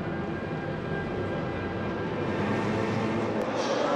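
Race car engines roar as a pack of cars speeds past.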